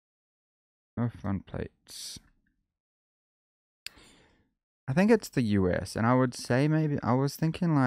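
A man talks with animation into a microphone, close up.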